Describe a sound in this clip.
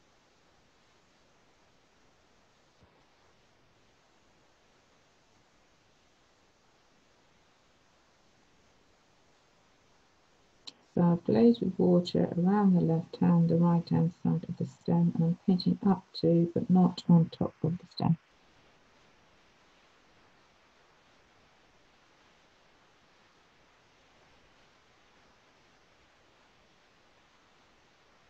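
A paintbrush softly brushes across paper.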